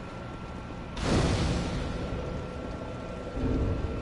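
A fire flares up with a loud whoosh.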